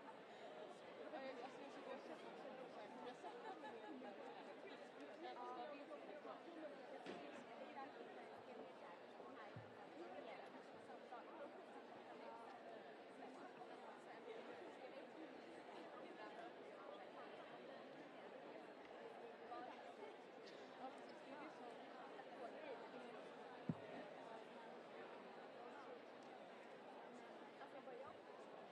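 A crowd of young people chatter at once in a large hall.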